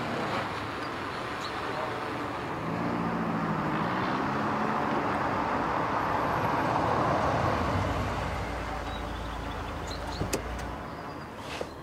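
A motorcycle engine idles and revs nearby.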